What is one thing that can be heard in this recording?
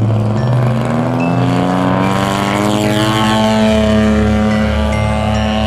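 A model plane's engine buzzes loudly, rising in pitch as the plane takes off and climbs.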